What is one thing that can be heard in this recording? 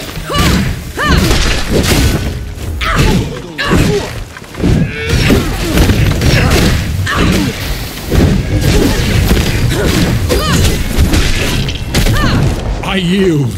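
Swords clash and strike armour in a fierce fight.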